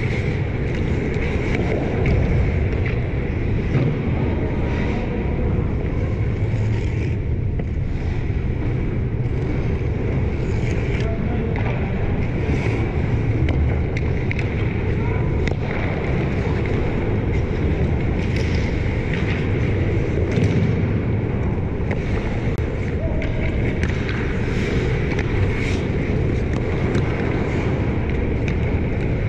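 Ice skates scrape and carve across the ice close by.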